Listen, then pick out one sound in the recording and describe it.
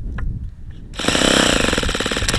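An electric starter whirs as it spins the engine.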